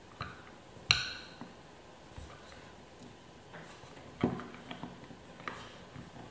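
A plastic roller presses and rolls over a board.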